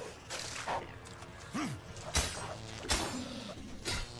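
A sword strikes a creature with sharp hits.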